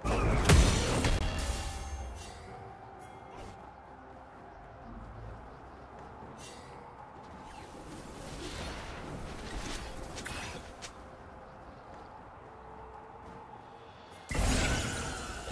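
A game character's magic effects whoosh and chime.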